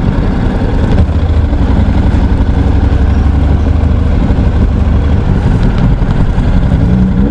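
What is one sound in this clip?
A motorcycle engine revs as the bike pulls away.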